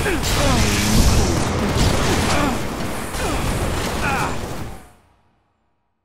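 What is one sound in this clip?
Gunfire and explosions crackle in a loud game battle.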